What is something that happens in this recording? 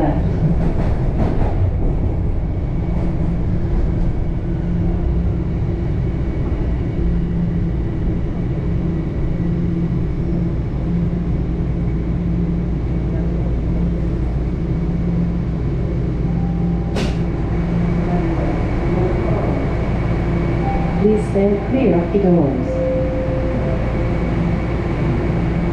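A subway train rumbles and hums steadily as it slows into a station.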